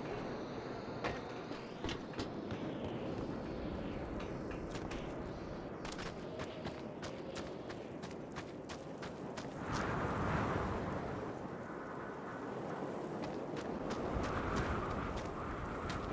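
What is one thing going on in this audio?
Footsteps thud quickly on wooden boards and hard ground.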